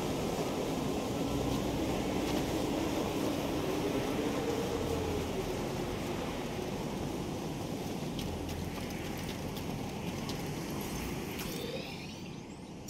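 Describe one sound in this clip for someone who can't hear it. Wind howls steadily in a snowstorm.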